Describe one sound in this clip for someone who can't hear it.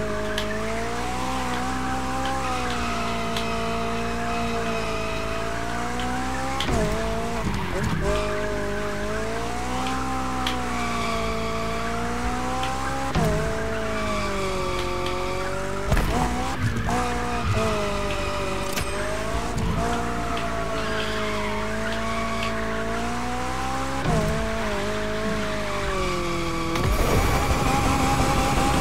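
A car engine drones loudly, rising and falling in pitch as it revs.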